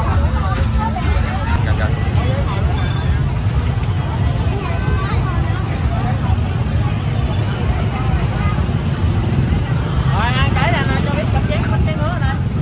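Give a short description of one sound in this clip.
A busy crowd chatters all around outdoors.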